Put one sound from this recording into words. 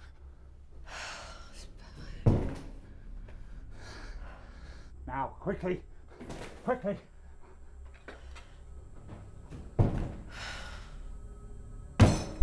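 A young woman sighs.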